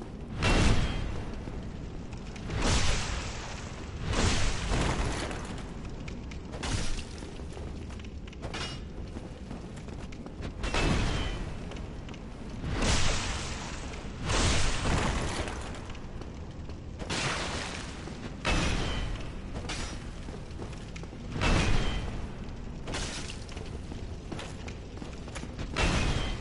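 Heavy sword blows strike and clang against armour again and again.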